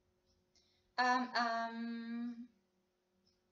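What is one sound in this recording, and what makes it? A young woman hums a short, wavering note close by.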